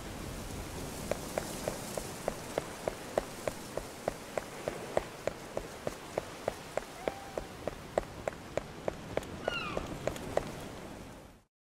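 Footsteps tap steadily on stone.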